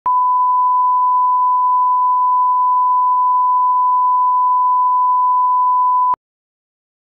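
A steady high test tone sounds, then cuts off abruptly.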